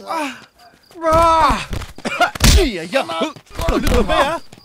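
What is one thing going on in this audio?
A man groans and gasps in pain close by.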